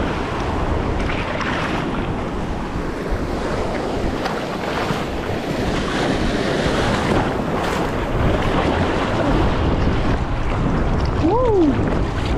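Sea water sloshes and splashes close by, heard from at water level.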